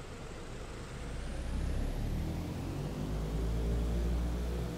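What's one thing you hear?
Aircraft engines hum low and slowly rise in pitch as they spool up.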